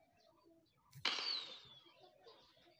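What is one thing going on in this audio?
Confetti bursts with a sudden celebratory whoosh.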